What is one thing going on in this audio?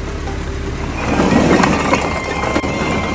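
A load of bricks tumbles and clatters onto the ground.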